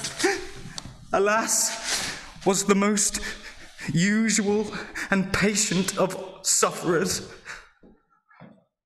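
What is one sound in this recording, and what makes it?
A man talks close by with animation, in a theatrical voice.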